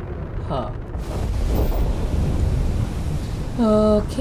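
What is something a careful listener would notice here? A spaceship jump drive roars with a rising whoosh.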